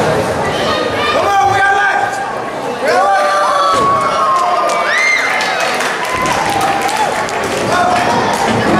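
A crowd of men and women cheers and shouts loudly in a large echoing hall.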